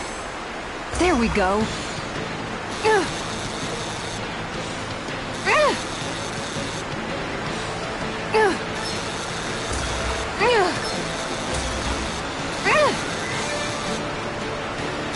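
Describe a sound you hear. A fishing reel whirs as a line is reeled in.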